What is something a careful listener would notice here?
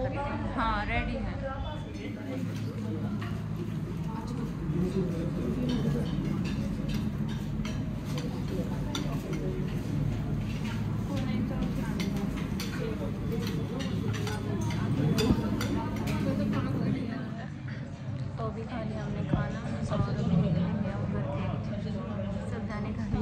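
Several women chat in the background of a busy room.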